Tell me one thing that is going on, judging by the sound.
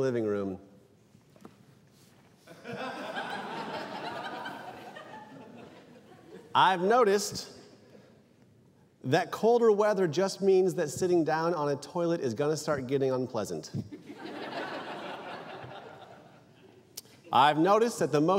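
A young man reads out into a microphone.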